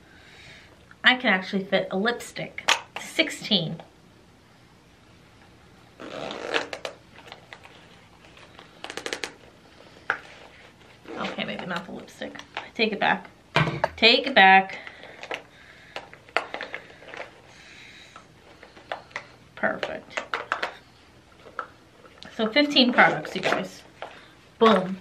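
A young woman talks casually into a nearby microphone, in short bursts.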